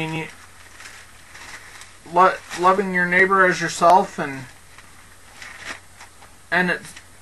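A man speaks calmly and slowly into a close microphone.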